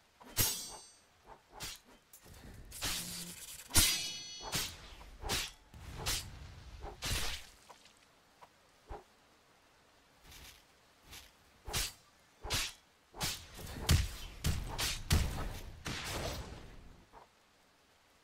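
Swords slash and clang in quick bursts.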